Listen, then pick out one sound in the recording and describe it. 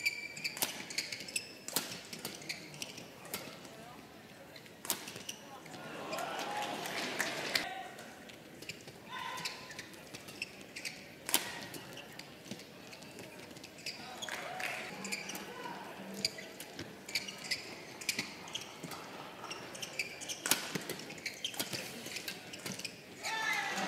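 Shoes squeak on the court floor.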